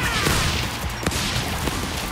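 A blast explodes with a loud boom.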